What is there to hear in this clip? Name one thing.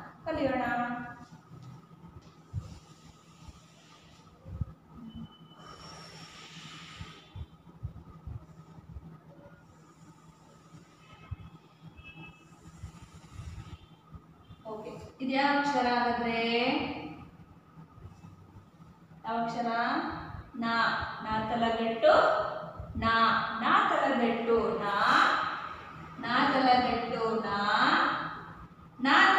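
A woman speaks clearly and with animation, close by.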